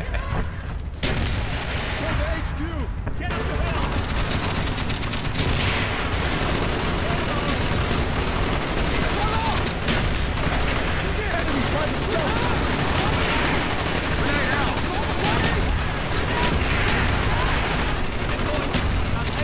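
Gunfire rattles and booms.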